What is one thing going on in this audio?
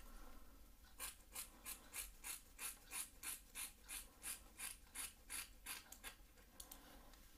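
Scissors snip through hair quickly and rhythmically.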